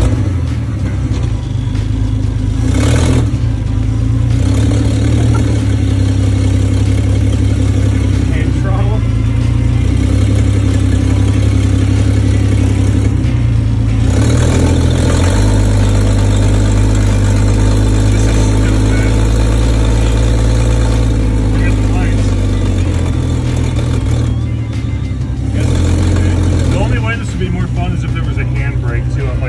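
A car engine rumbles loudly close by, its pitch shifting as it revs.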